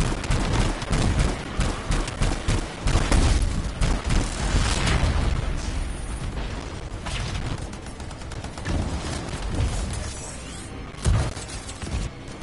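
Explosions boom loudly.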